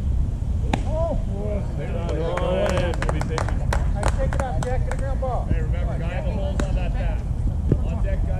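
Players shout and cheer across an open field.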